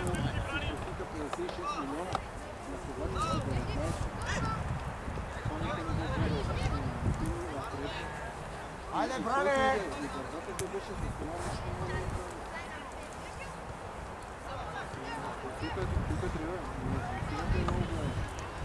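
Young male players shout to each other across an open outdoor field.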